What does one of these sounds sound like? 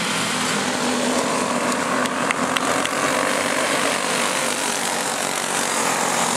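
Small racing cars buzz loudly around a dirt track.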